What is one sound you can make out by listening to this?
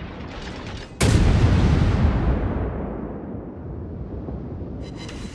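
Heavy guns fire with a loud boom that rolls away slowly.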